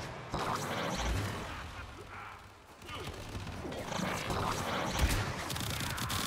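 Heavy thuds of impacts boom.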